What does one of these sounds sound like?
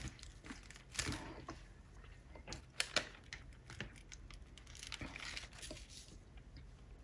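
Foil and paper crinkle and rustle as they are handled.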